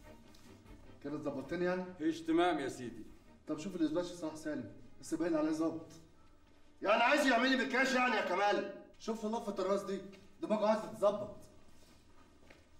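A man speaks loudly and with emotion.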